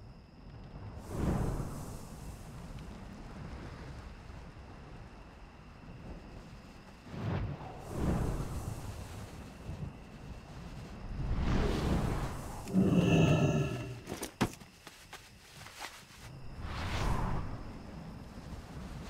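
A magical mount whooshes in repeated swelling rushes.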